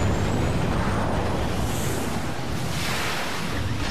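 Spaceships whoosh past.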